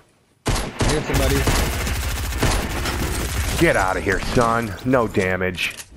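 A gun fires a quick burst of shots.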